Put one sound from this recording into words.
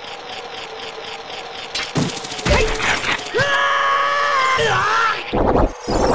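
A hookshot chain whirs as it fires and reels in.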